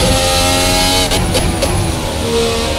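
Gearshifts crack sharply as the car slows into a corner.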